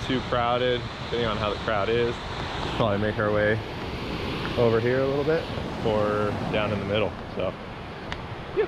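A man talks calmly close by, outdoors in wind.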